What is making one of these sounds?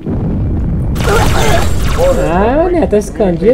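Energy weapon shots zap and whine in quick bursts.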